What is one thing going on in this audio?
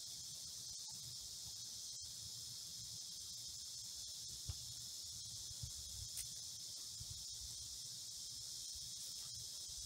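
A katana swishes as it is swung through the air.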